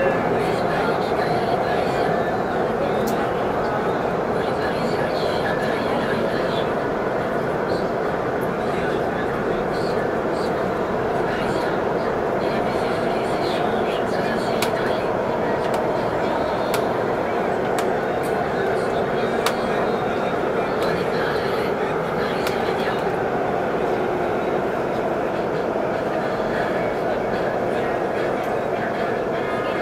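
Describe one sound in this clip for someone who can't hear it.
A train carriage rumbles and hums steadily while moving.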